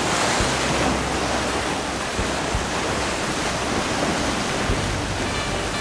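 Waves wash and splash over rocks close by.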